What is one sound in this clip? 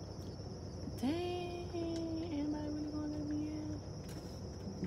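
A young woman sings a long held note close by.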